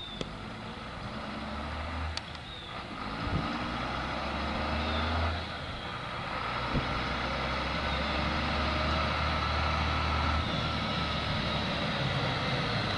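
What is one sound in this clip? A diesel dump truck drives toward the listener, its engine rumbling louder.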